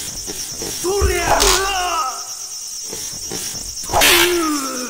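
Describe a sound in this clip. Wooden practice swords clack together.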